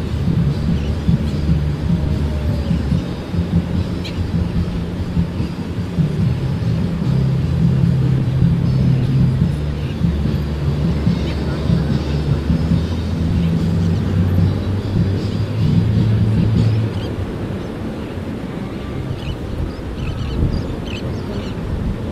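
Small waves wash steadily onto a beach.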